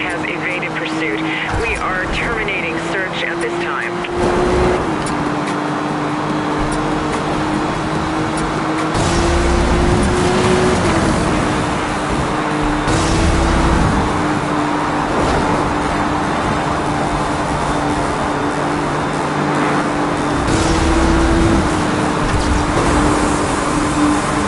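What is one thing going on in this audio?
A sports car engine roars at high speed, shifting gears up and down.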